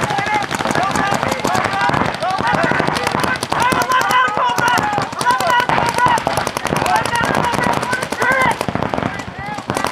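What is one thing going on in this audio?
Paintball markers fire in rapid bursts of sharp pops.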